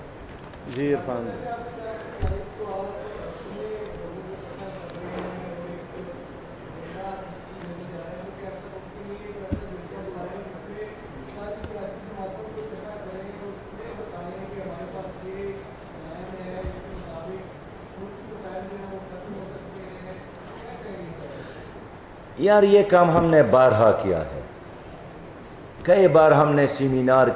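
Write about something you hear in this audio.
An elderly man speaks calmly into microphones.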